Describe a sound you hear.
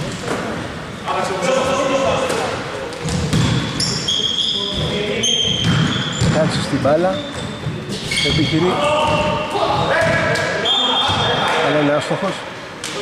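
Men shout to each other across a large echoing gym.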